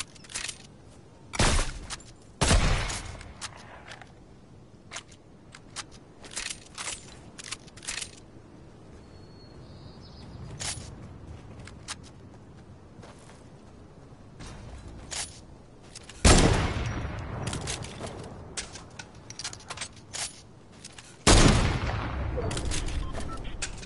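Footsteps thud quickly on wooden steps.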